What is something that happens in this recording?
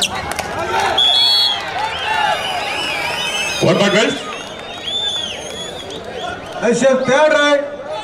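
A crowd roars and cheers loudly after a point.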